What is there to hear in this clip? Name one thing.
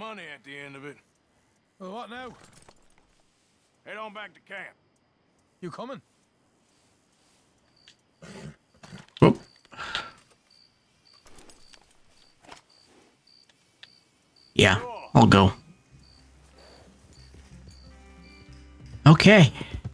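A man talks into a nearby microphone with animation.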